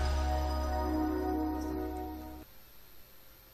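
A game's start-up jingle plays.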